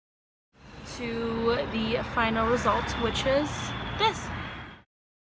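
A young woman talks close to the microphone.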